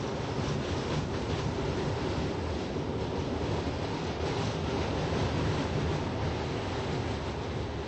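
A subway train rumbles along the tracks in an echoing tunnel.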